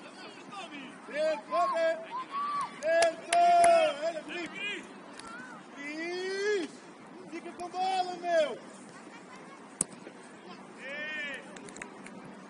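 Young players shout to each other outdoors, some way off.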